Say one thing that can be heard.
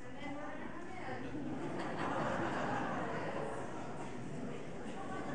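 A large choir sings together in a big echoing hall.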